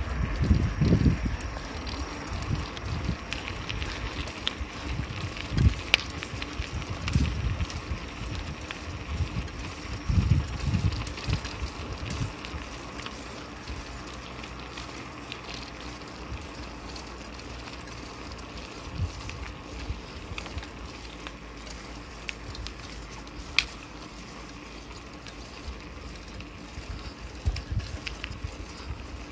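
Wind buffets the microphone in low, rumbling gusts outdoors.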